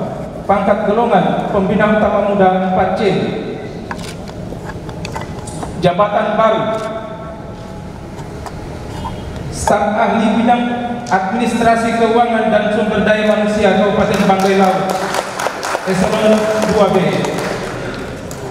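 A man speaks in a slow, steady, chanting voice through a loudspeaker in an echoing hall.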